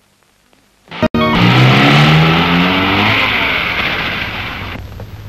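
A jeep engine revs as the jeep drives along a dirt road.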